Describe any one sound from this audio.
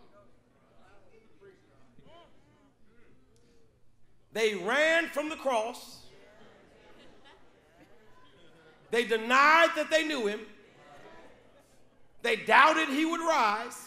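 A man preaches through a microphone, calling out in loud, fervent bursts between quieter phrases.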